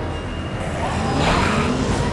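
A heavy truck engine rumbles.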